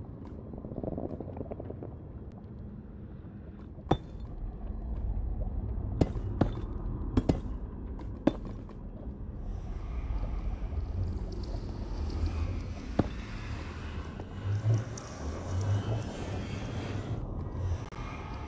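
Lava bubbles and pops in a low rumble.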